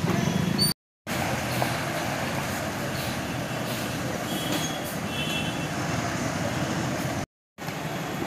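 A bus engine rumbles as the bus wades through water.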